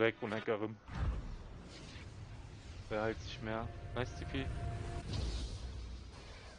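A shimmering magical hum rises as a beam of light flashes down.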